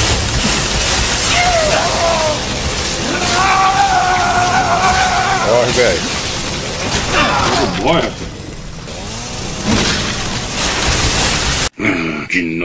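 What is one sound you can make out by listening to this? A chainsaw engine roars loudly.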